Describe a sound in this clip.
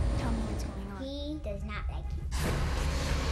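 A boy talks close by.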